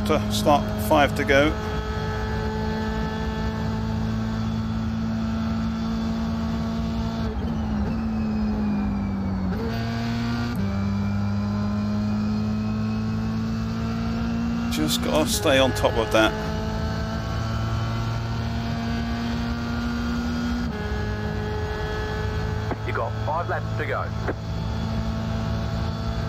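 A racing car engine roars steadily, shifting pitch as gears change.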